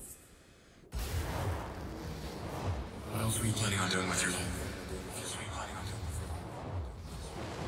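A deep rumbling roar swells and then bursts into a loud blast.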